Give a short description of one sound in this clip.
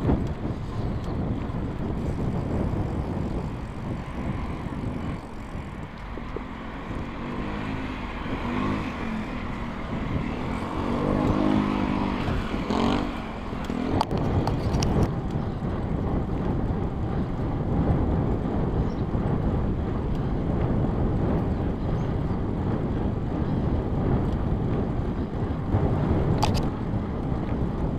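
Bicycle tyres roll over paving stones.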